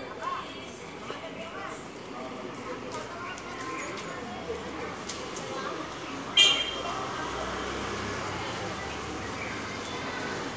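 Men talk and call out outdoors at a distance.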